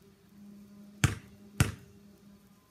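A basketball bounces twice on concrete outdoors.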